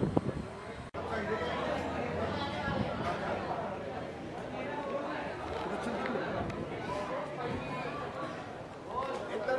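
People talk over one another in a busy crowd.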